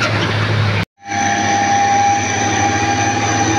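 Several truck engines drone as trucks climb a road.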